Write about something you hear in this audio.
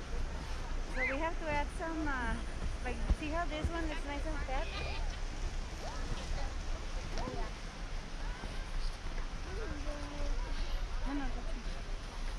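Young children shout and squeal excitedly nearby.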